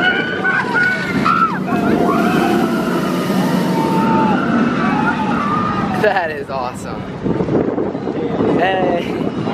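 A roller coaster rumbles and roars along its track.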